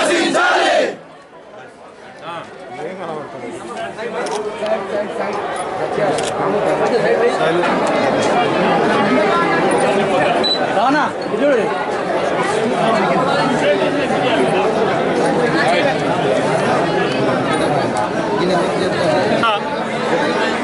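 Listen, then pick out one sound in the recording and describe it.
A crowd of men and women talk and shout over one another, close by.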